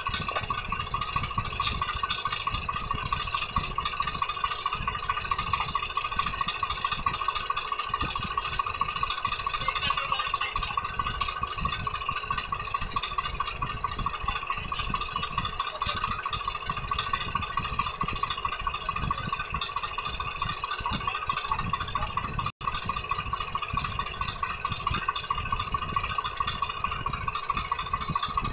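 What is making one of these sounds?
A tractor engine runs with a steady rattling chug close by.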